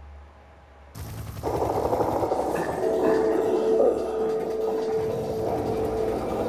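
Helicopter rotors roar loudly overhead.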